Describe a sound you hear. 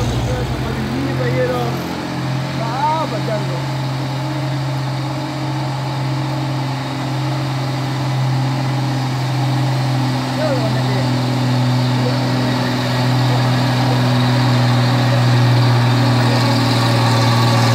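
A truck engine drones steadily as it climbs a hill toward the listener.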